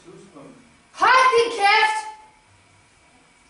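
A young girl shouts loudly.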